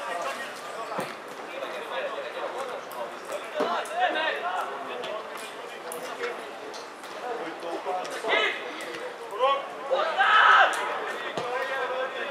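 A football thumps as it is kicked.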